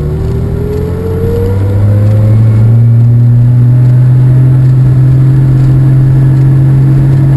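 Wind rushes past a moving car.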